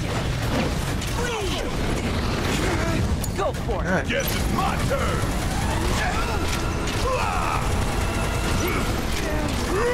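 Swords clash and blows land in rapid game combat.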